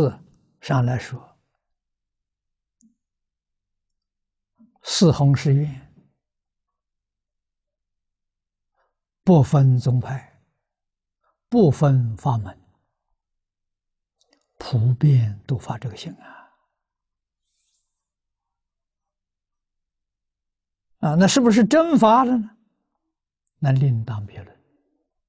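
An elderly man speaks calmly into a close microphone, with long pauses.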